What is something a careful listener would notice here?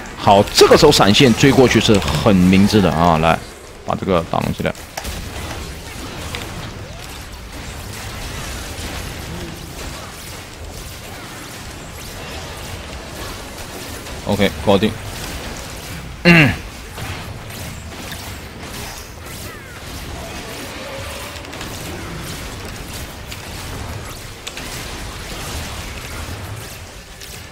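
Fantasy battle sound effects whoosh and crackle steadily.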